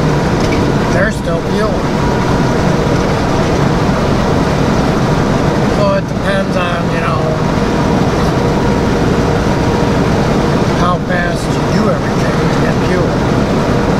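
A truck engine hums steadily as tyres roll over a highway.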